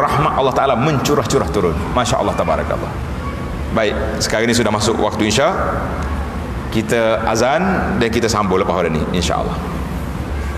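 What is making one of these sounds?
An elderly man speaks with animation through a microphone, echoing in a large hall.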